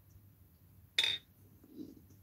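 A small tool clicks sharply against a table.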